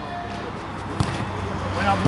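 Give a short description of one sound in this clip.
A football is kicked hard with a thud.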